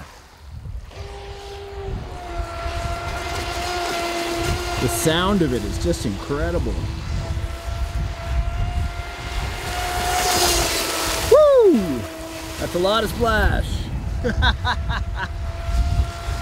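A small electric motor of a remote-controlled boat whines steadily as the boat speeds across the water.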